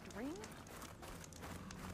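A campfire crackles.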